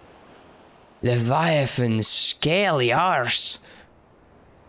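A young man exclaims loudly and with animation close to a microphone.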